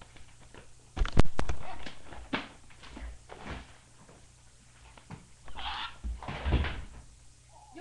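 Objects thump and clatter nearby.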